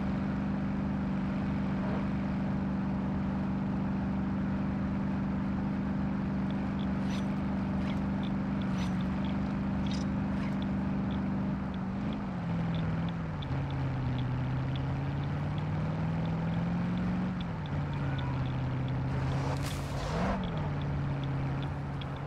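Tyres roll over a road.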